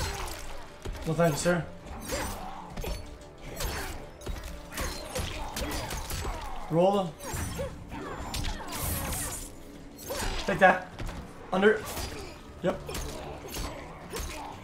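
Punches and kicks land with sharp thuds and whooshes.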